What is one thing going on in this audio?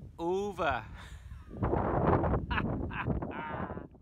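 A man laughs loudly close to a phone microphone.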